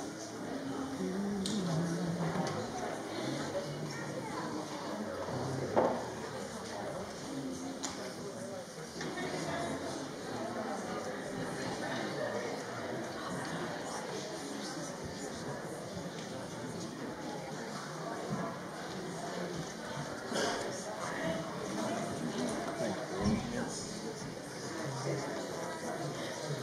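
Men and women murmur quietly nearby in a large room.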